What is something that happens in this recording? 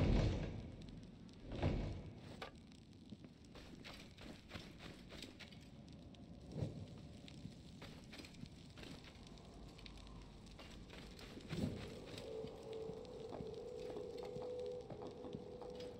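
A torch flame crackles and hisses.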